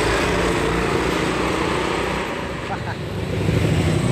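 Small motor scooters ride past on a road.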